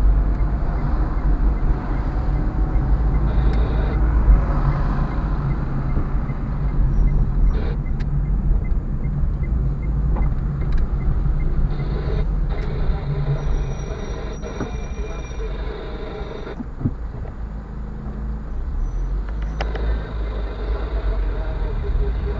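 A car engine hums steadily from inside as the car drives along a street.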